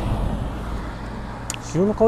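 A van drives past on the road.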